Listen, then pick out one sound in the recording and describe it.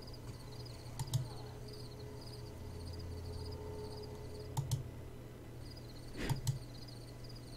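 A soft click sounds as a dialogue box advances.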